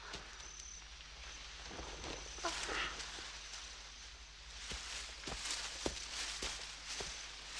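Tall dry stalks rustle and swish as people push through them.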